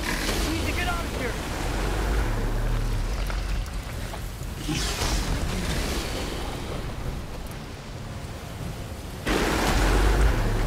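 Wind blows steadily outdoors with a low rumble.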